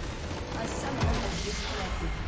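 A loud explosion booms as a structure is destroyed.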